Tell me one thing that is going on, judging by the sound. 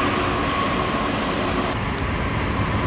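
A freight train rumbles past.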